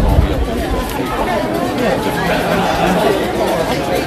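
A crowd of protesters chants and shouts nearby.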